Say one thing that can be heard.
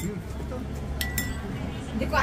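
A spoon clinks against a cup.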